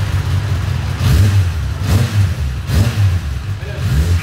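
A motorcycle engine revs in short, sharp bursts.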